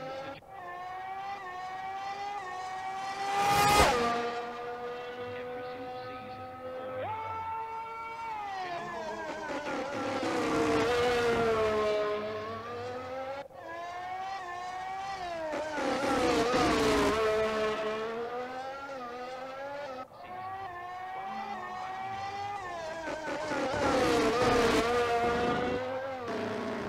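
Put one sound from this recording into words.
A racing car engine screams at high revs, shifting gears and rising and falling in pitch as it passes.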